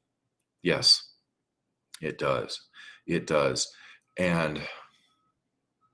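A middle-aged man speaks calmly through an online call microphone.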